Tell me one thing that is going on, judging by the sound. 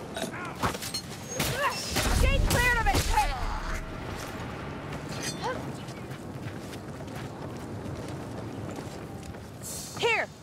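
Weapons strike and slash with sharp thuds.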